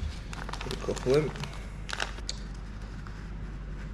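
A plastic bag crinkles as it is opened.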